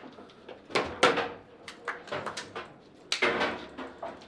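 A foosball ball clacks sharply against the rods and walls of a table.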